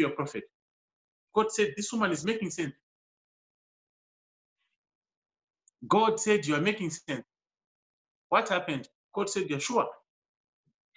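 A man speaks calmly in short phrases, close to a microphone.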